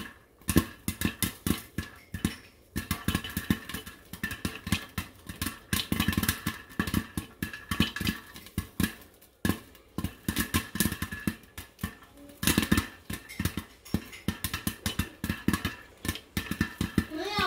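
Popcorn pops rapidly against a metal lid.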